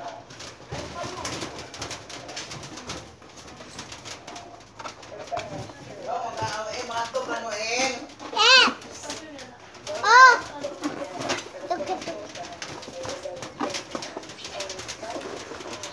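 Balloons rub and squeak against each other.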